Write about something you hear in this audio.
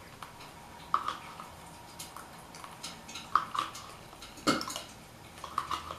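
A spoon clicks against a plastic cup.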